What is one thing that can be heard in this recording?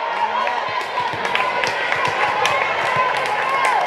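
A volleyball bounces and thuds on the floor.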